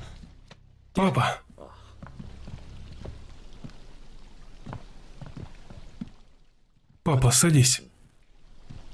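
A young man speaks briefly and calmly nearby.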